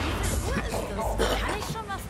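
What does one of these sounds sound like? A beast snarls and growls close by.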